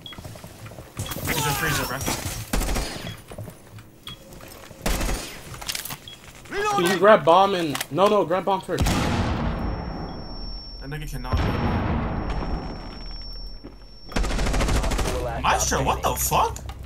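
Gunshots fire in short, rapid bursts.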